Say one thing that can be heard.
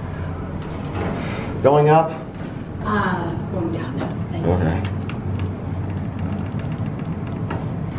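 Elevator buttons click as a finger presses them.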